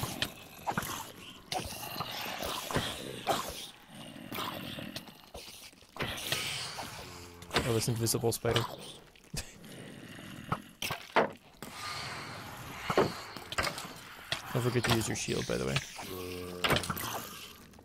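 Zombies groan nearby.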